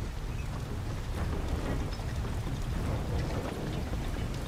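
A fire crackles in a brazier.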